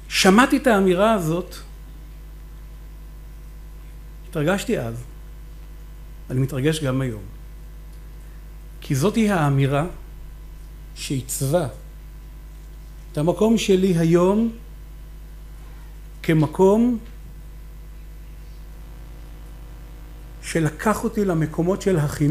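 A middle-aged man speaks with animation through a microphone, pausing often.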